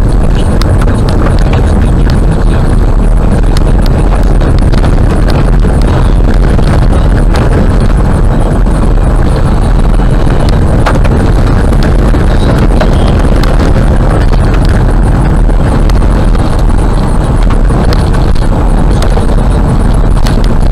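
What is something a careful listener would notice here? A car drives steadily along a rough road, its tyres rumbling loudly with small rattles and knocks.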